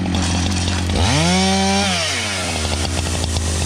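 A chainsaw revs up briefly and winds down.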